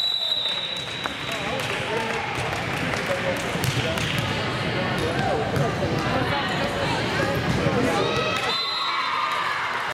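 A crowd of girls chatters and cheers in a large echoing gym.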